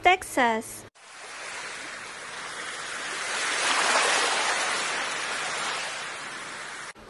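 Waves wash softly onto a sandy shore.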